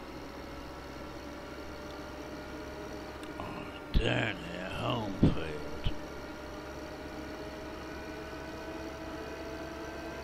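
A tractor engine hums steadily while driving.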